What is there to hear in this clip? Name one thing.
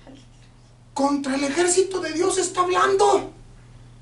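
An older man speaks loudly and with animation.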